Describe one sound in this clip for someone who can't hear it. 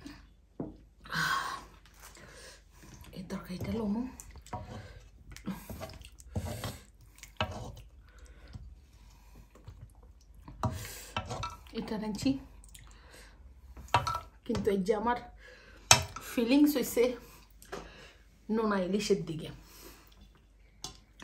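A woman talks animatedly close by.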